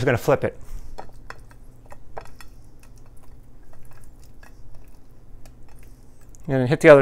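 Small knocks and taps sound on a counter as food is handled.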